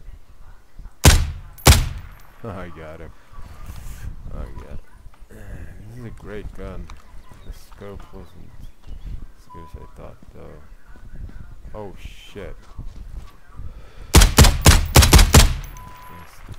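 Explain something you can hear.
Gunshots crack loudly, first two single shots and later a rapid burst.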